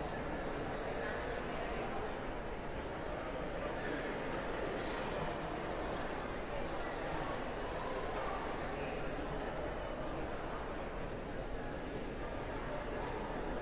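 A crowd of people murmur and chat quietly in a large echoing hall.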